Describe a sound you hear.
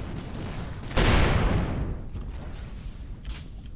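A huge explosion booms and slowly fades away.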